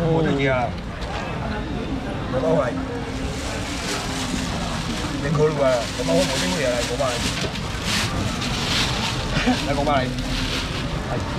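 A busy crowd chatters nearby.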